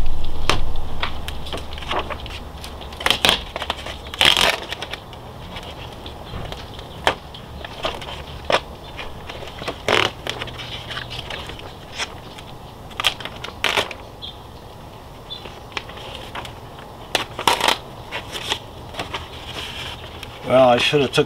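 A plastic sheet crinkles and rustles as it is peeled off a surface.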